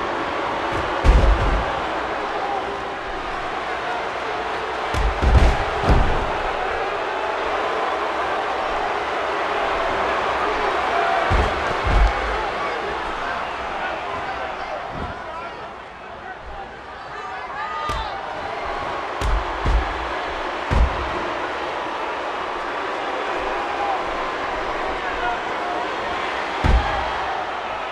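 Bodies slam heavily onto a wrestling mat with loud thuds.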